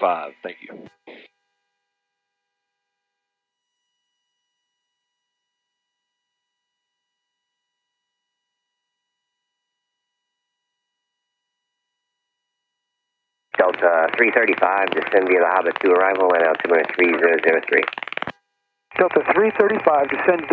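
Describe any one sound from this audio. A man speaks calmly over a headset intercom.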